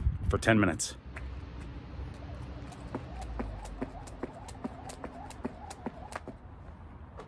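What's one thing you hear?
A jump rope taps lightly and quickly on hard ground.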